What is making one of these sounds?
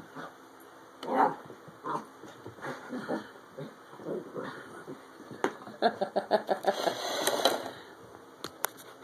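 Dogs growl and grumble while playing.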